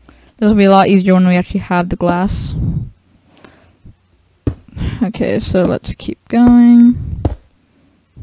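Stone blocks are set down with short, soft thuds.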